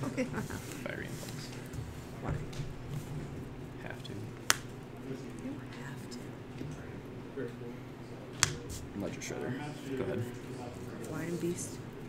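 Playing cards slide and tap on a soft mat.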